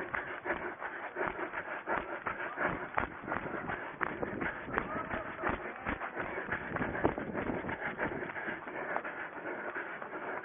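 Footsteps run quickly through dry grass.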